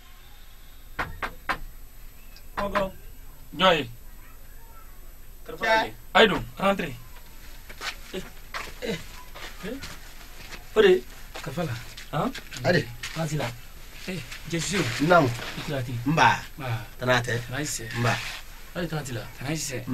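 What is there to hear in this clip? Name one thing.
Several young men talk with animation close by.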